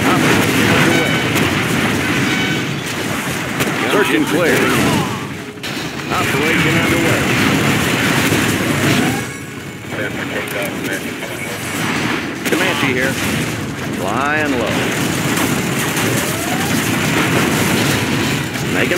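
Explosions boom and crackle in a game battle.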